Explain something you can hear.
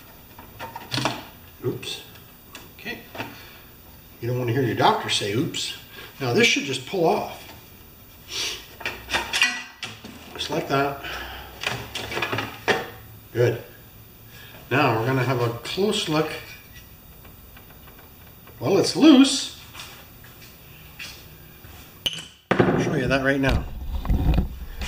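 A man speaks calmly and close by, explaining.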